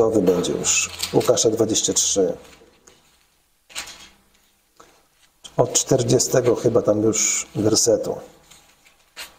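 A middle-aged man reads aloud calmly into a clip-on microphone.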